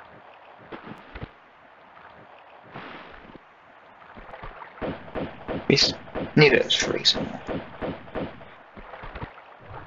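Water splashes rhythmically as a person wades through it.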